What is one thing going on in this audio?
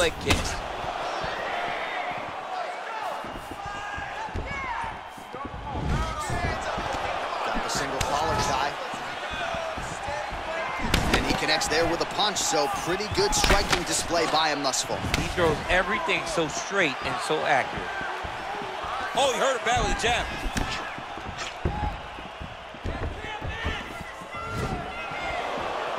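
A crowd cheers and murmurs in a large arena.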